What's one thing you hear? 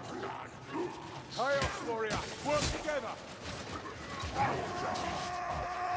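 Weapons strike and thud in a close fight.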